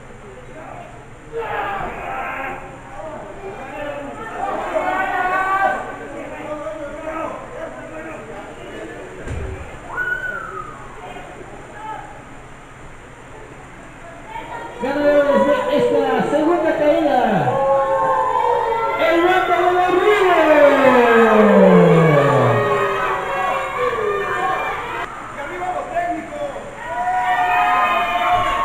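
A crowd of spectators shouts and cheers loudly indoors.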